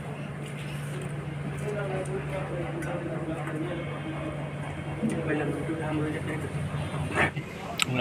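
Men talk quietly a little way off.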